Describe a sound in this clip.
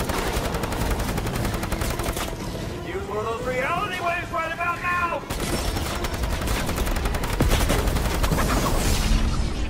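Energy blasts explode with loud bangs.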